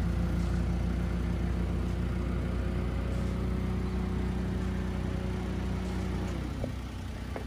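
An engine idles with a steady low hum, then winds down.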